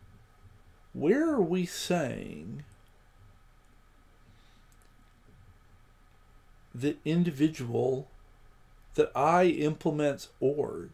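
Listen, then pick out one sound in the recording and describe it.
A man talks calmly into a close microphone, in short bursts.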